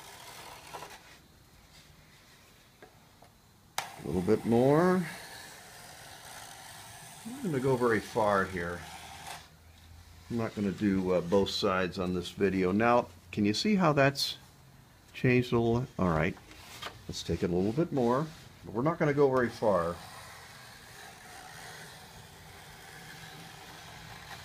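A small hand plane scrapes along wood in short strokes.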